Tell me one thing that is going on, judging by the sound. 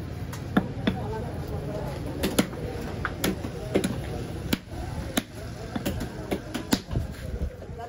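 Wet fish flesh slaps onto a wooden block.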